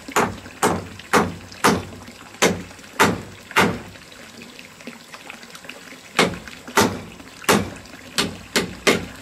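A hammer strikes sharply against wood in a steady series of blows, pausing briefly before resuming.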